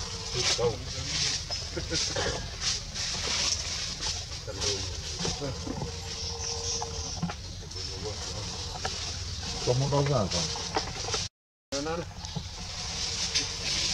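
Leaves and branches rustle as a monkey climbs through a tree.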